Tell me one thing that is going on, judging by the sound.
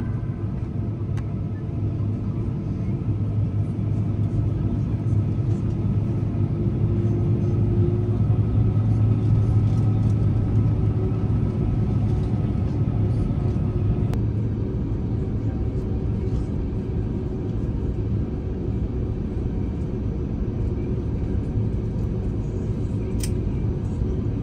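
Jet engines drone steadily, heard from inside an aircraft cabin.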